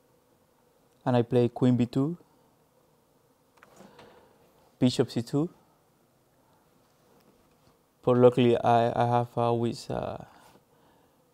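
A young man speaks calmly into a microphone, in short phrases with pauses.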